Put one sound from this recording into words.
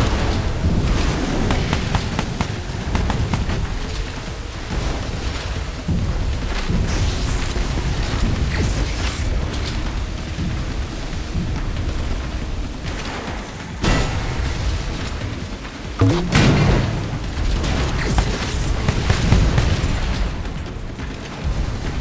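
A boat engine roars steadily over rushing water.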